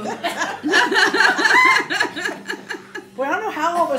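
A young woman laughs loudly close by.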